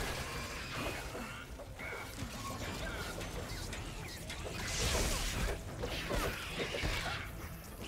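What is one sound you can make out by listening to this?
Gunfire and energy blasts crackle in a game battle.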